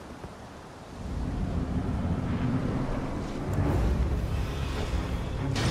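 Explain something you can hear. A large creature roars and crashes during a fight.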